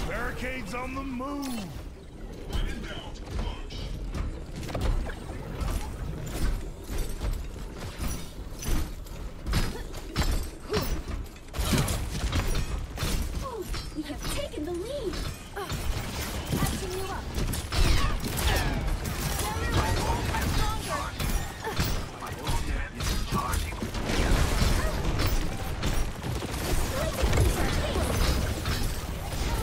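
Video game weapons fire in rapid, punchy bursts.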